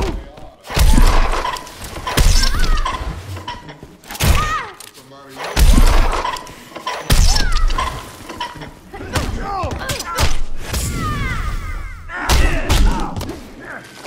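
Heavy punches and kicks thud and smack in a fighting game.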